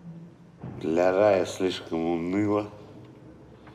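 An elderly man speaks quietly and wearily nearby.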